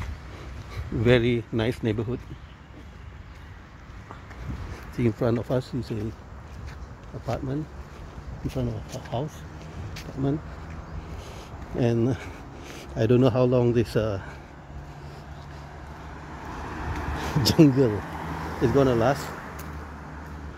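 A man talks casually close by, in short bursts.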